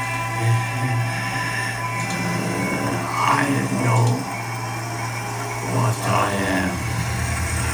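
An elderly man speaks weakly and slowly, close by.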